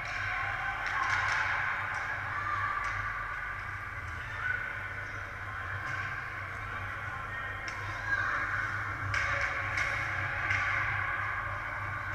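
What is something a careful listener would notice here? Hockey sticks and pucks clack sharply on the ice.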